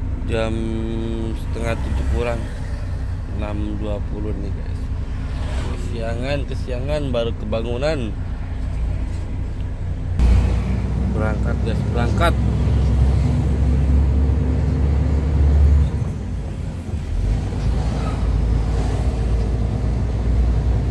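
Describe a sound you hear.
A truck engine rumbles steadily, heard from inside the cab.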